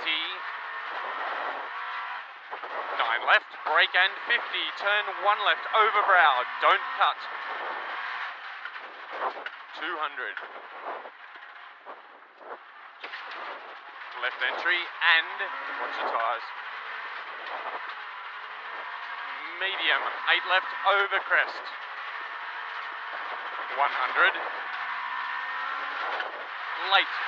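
A car engine roars and revs hard, heard from inside the car.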